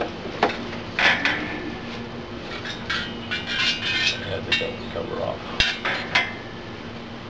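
Metal clinks and taps as a hookah's top is handled.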